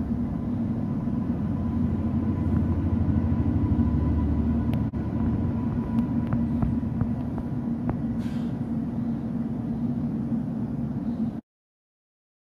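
A freight train rumbles past close by on the tracks.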